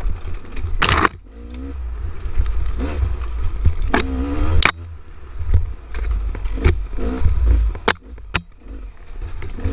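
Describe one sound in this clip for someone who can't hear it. A motorcycle engine revs up and down in bursts.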